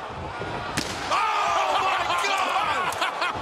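A loud explosion bursts.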